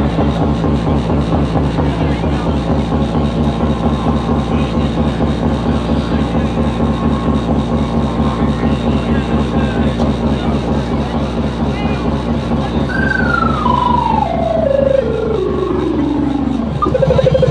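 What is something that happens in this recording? A crowd of young people cheers and shouts.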